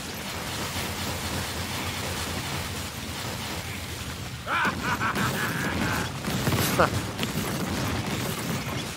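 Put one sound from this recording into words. Magic blasts whoosh and crackle in a game.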